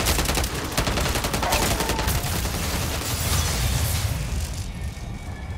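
Rapid gunfire rattles loudly and close.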